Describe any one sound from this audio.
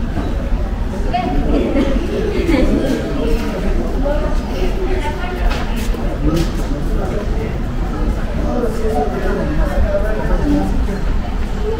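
People talk in a murmur a little way off.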